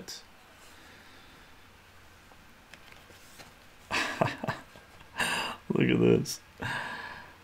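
Paper pages rustle and crinkle as a magazine is handled.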